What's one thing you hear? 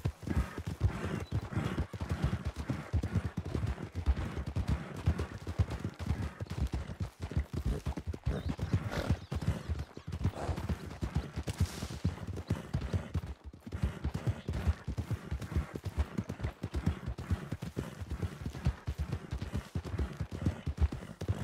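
A horse's hooves thud along a dirt trail at a walk.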